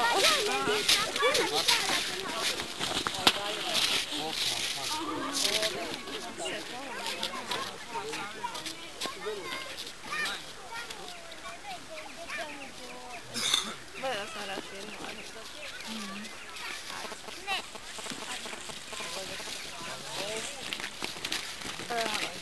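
Boots crunch on snow as people walk.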